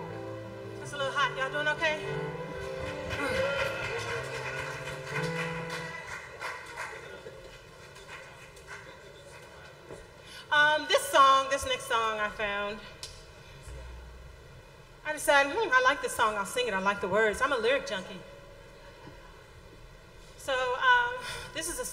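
A woman sings loudly through a microphone and loudspeakers, in short bursts.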